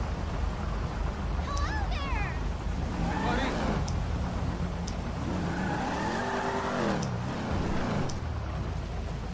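A car engine rumbles steadily as it drives.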